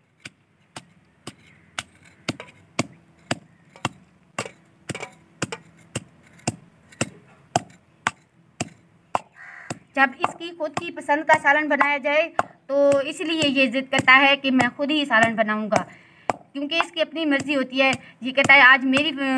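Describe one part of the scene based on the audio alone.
A wooden pestle pounds steadily in a clay mortar.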